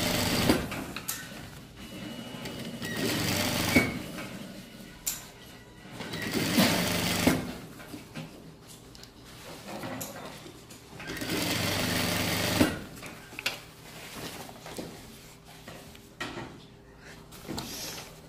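Fabric rustles as it slides across a table.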